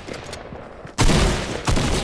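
A rifle fires with a sharp, loud crack.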